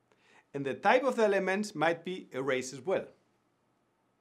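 An elderly man speaks calmly and warmly into a close microphone.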